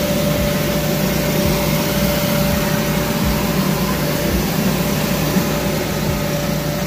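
A blower motor hums loudly and steadily, pushing air into an inflatable.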